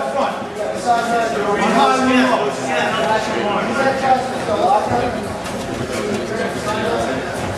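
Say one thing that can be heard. Boxing gloves thud against each other and against bodies.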